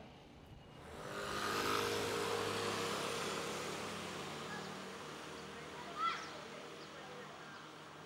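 A motor scooter drives past nearby.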